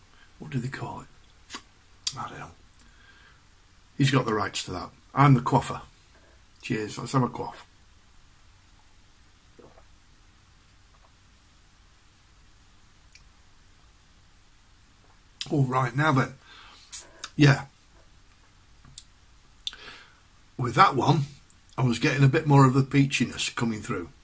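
An elderly man talks calmly, close to a microphone.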